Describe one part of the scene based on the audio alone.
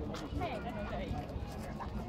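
A young woman laughs and talks.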